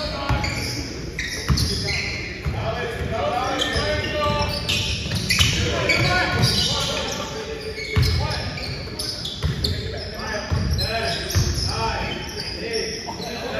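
A crowd of spectators chatters and calls out.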